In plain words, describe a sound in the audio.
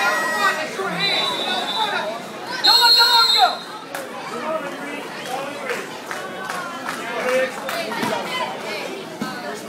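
Adults and children in a crowd shout and cheer in an echoing hall.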